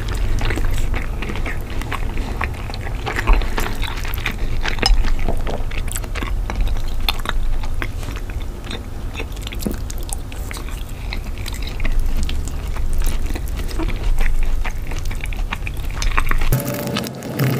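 A fork scrapes and taps against a plate.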